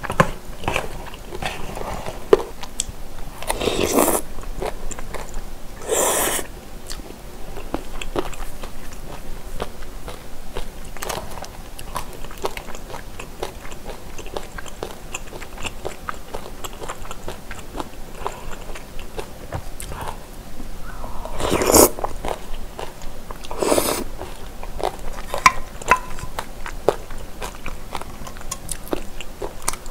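A young woman chews food wetly, close to a microphone.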